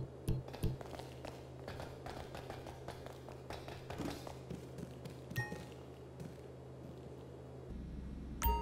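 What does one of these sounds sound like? Footsteps clack on a hard floor and metal stairs.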